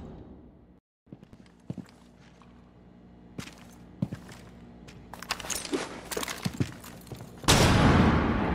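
Footsteps thud quickly in a game.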